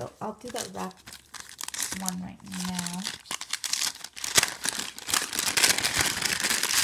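A plastic bag crinkles and rustles as it is handled close by.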